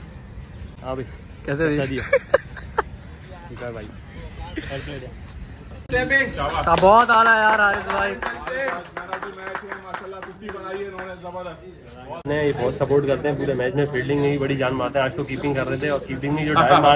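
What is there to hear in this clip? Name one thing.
A young man talks cheerfully close by.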